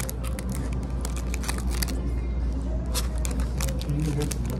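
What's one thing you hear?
A young man chews food up close.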